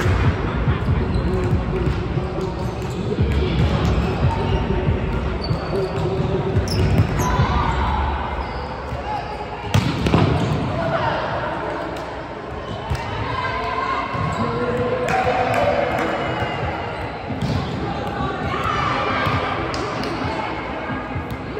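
Young women call out and chatter nearby in a large echoing hall.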